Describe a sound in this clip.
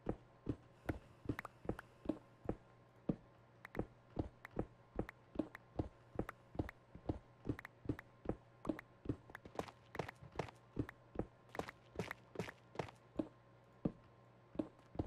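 A pickaxe rapidly chips at stone with sharp, steady taps.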